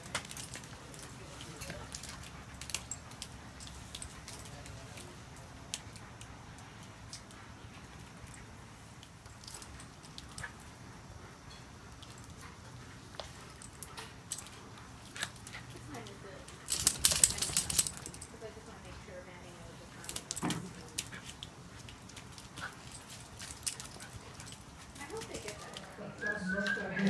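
Dog paws patter and scuff on wet concrete.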